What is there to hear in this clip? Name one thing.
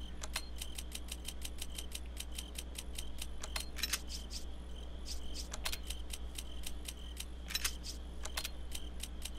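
Quick electronic menu ticks sound over and over in a fast, steady run.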